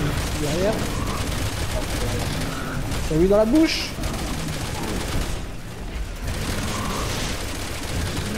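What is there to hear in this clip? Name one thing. A heavy machine gun fires rapid bursts.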